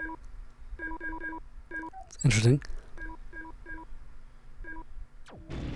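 Short electronic menu beeps sound as a selection moves up and down.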